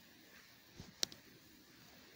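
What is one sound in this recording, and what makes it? A short electronic click sounds as a game menu opens.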